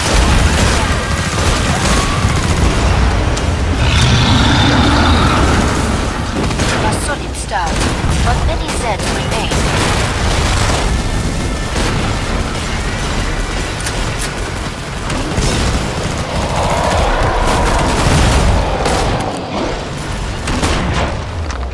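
Pistol shots ring out rapidly, one after another.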